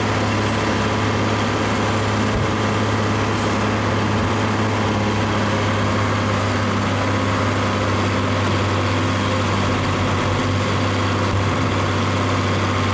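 A tractor engine runs steadily nearby.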